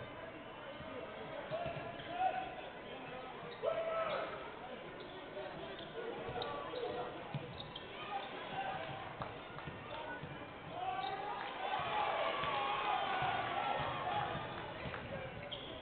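A crowd of spectators murmurs and cheers.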